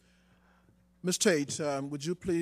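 A man speaks loudly through a microphone in a large hall.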